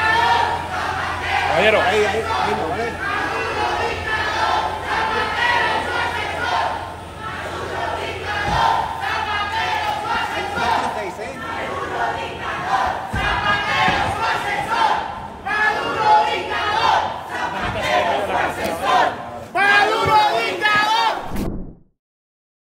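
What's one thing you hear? A crowd of men and women shout and chant loudly nearby outdoors.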